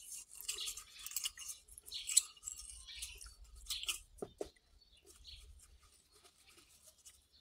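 Metal parts clink and scrape close by.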